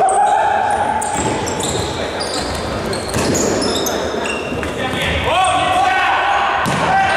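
Sneakers squeak sharply on a hard court floor, echoing in a large hall.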